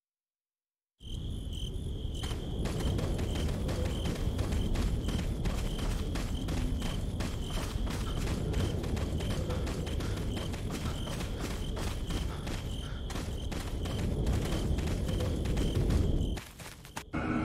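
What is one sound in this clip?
Footsteps crunch steadily on dry leaves and dirt.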